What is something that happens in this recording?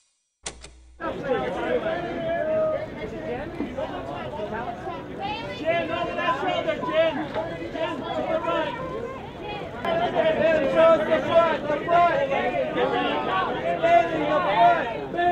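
A crowd of men and women chatters loudly all around.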